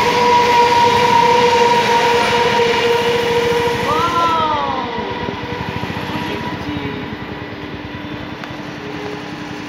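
A train rumbles and clatters past close by, then fades.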